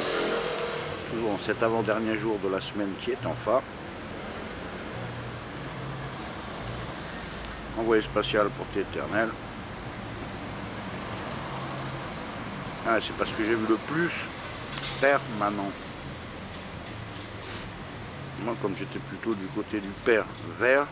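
An elderly man speaks slowly in bursts, very close to the microphone.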